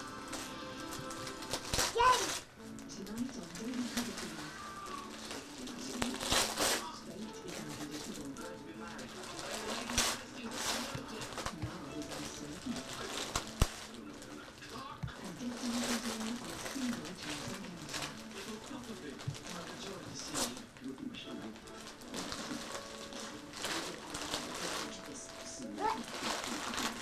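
Wrapping paper crinkles and tears as a small child unwraps a gift.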